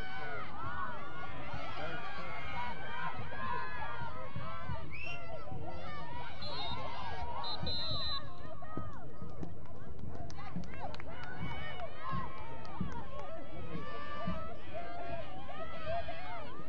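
Young women shout and call to one another across an open field.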